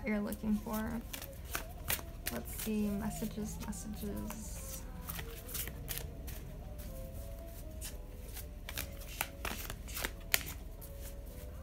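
Playing cards riffle and slap together as a deck is shuffled by hand.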